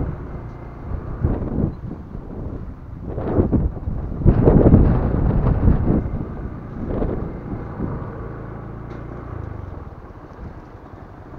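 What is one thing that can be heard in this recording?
Wind gusts roughly across the microphone outdoors.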